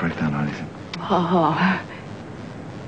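A young woman speaks with feeling nearby.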